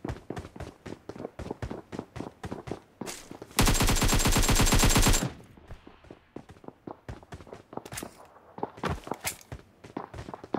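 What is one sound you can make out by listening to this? Quick footsteps patter along hard ground.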